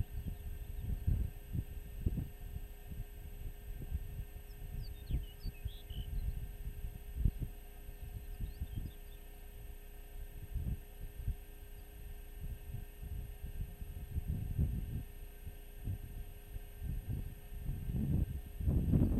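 Wind gusts and buffets loudly outdoors.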